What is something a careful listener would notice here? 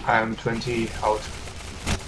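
Rapid gunfire bursts close by.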